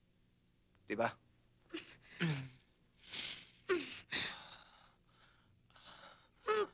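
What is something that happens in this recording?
A young woman sighs and breathes heavily.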